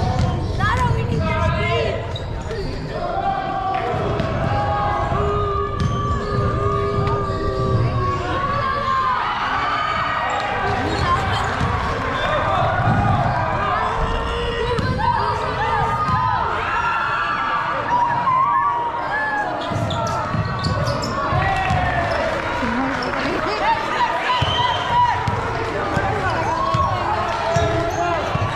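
Young players shout and call out to each other in a large echoing hall.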